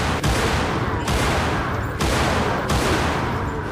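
Pistol shots ring out one after another, each with a short echo.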